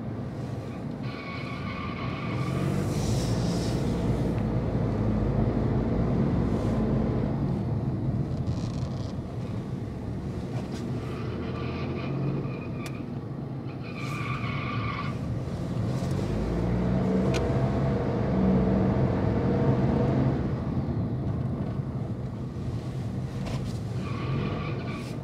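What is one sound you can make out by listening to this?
A car engine hums steadily with a low rumble.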